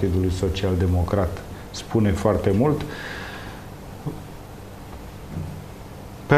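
A middle-aged man speaks calmly into a clip-on microphone close by.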